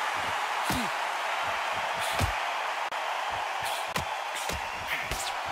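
A crowd murmurs and cheers steadily.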